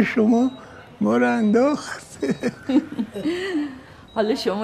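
A middle-aged woman laughs softly.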